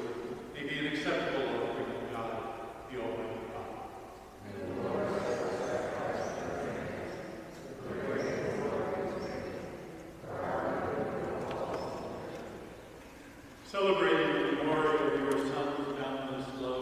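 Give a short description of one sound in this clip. A man chants slowly through a microphone in a large echoing hall.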